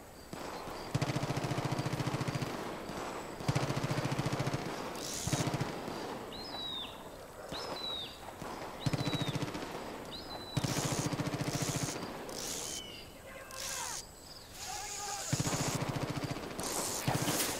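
A fishing reel whirs in short bursts as line is wound in.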